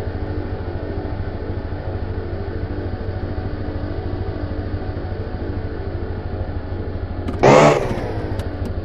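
A car engine idles with a steady low hum.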